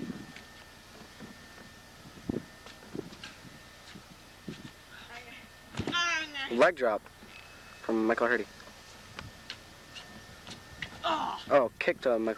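Bodies thud onto a padded mat outdoors.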